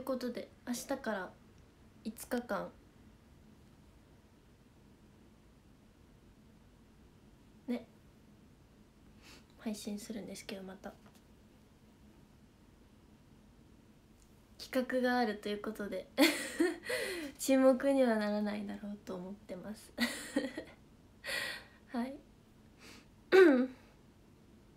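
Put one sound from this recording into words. A young woman talks brightly and close by, in bursts with pauses.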